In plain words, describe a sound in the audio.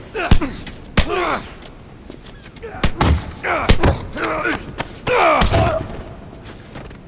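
A man grunts and groans with strain while fighting.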